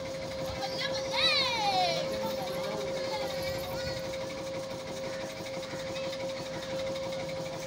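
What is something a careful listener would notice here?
A fairground ride hums steadily as it spins.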